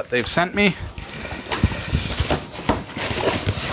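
Cardboard flaps rustle and scrape as a box is opened.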